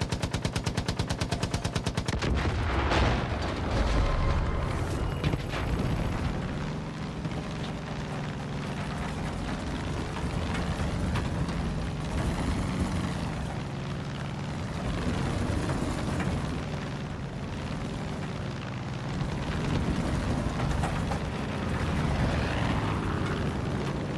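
A propeller plane's engine drones steadily, rising and falling slightly in pitch.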